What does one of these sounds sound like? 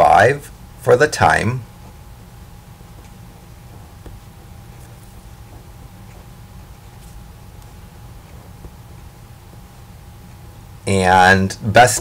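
A marker squeaks softly as it writes on paper.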